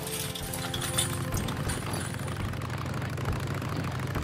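Motorcycle tyres rumble over wooden planks.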